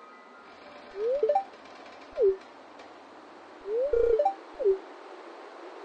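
Short chirping electronic beeps sound as a text box pops open and closes.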